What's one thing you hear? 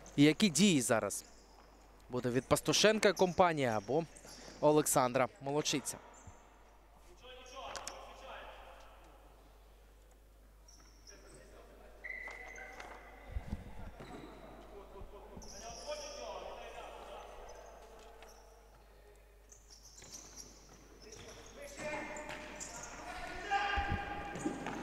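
A ball is kicked with a dull thud on an indoor court.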